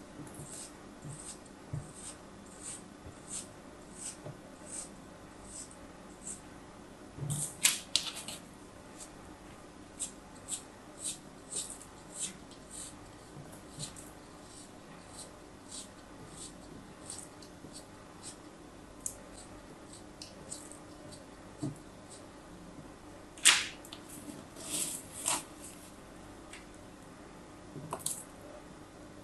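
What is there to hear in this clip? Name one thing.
A blade cuts through damp sand with soft, crisp scraping ticks.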